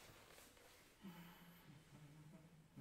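A piano plays soft, low notes.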